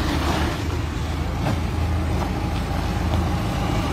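A backhoe loader's diesel engine rumbles close by.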